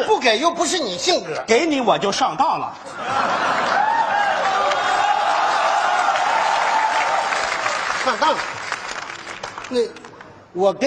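A man speaks loudly and with animation through a microphone on a stage.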